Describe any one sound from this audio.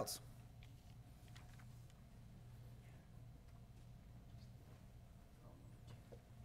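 A man speaks calmly into a microphone in a large room.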